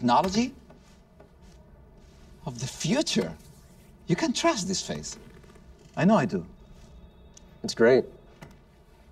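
Men talk calmly, taking turns.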